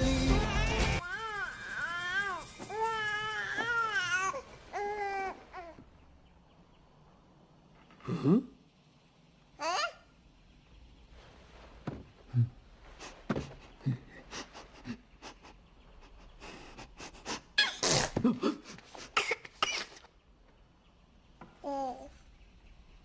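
A baby coos and babbles up close.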